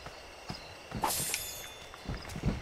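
A short chime rings as items are picked up.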